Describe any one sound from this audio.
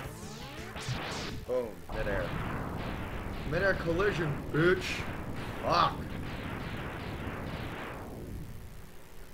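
Video game explosions crackle in rapid bursts.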